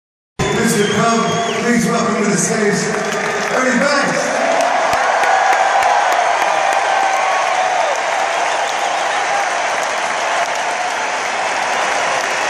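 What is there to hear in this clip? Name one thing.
A large crowd cheers and sings along loudly.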